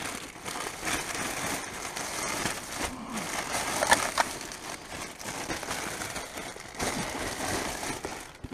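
Plastic bags rustle and crinkle as gloved hands rummage through them.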